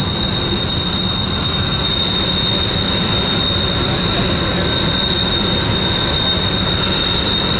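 Diesel locomotives rumble steadily as a freight train passes.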